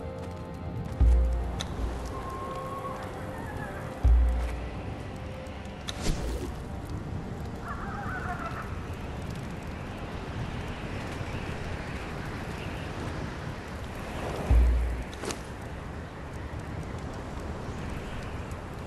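Game menu clicks sound as menus open and close.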